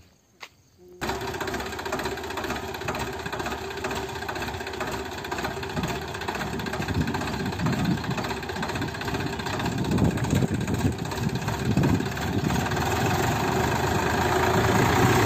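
A rotary tiller churns through soil.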